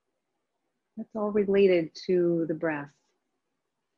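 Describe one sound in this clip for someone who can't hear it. A woman speaks calmly into a nearby microphone, as in an online call.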